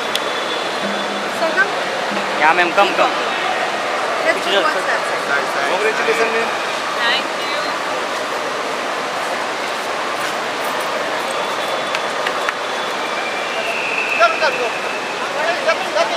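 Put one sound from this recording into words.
A crowd of men and women talks and calls out nearby.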